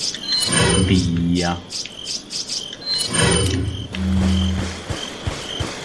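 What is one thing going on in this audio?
Short electronic menu tones chime.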